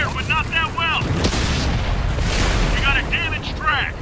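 A shell explodes with a sharp blast.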